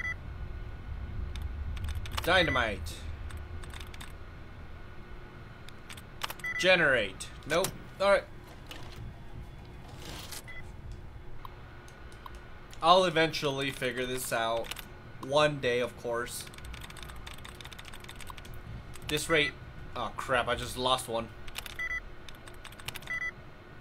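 Keys click rapidly on an old computer terminal.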